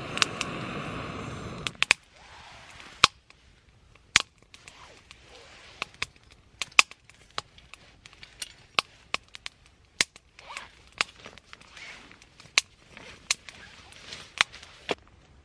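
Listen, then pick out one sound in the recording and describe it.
A fire roars with a soft rushing sound.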